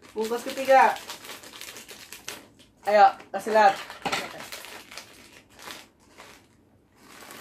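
Plastic snack packets crinkle and rustle.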